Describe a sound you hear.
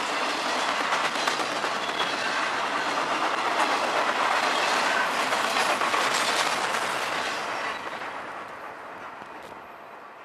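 A freight train rumbles past close by and then fades away.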